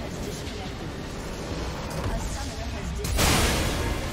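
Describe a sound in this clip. Game spell effects crackle and boom in a loud battle.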